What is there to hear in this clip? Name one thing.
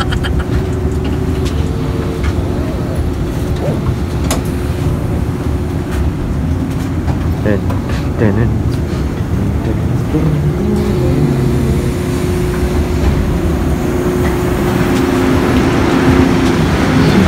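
A train rumbles and hums steadily.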